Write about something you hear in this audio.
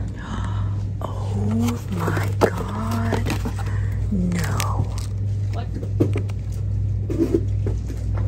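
Plastic ribbon spools clatter softly as they are pulled from a shelf.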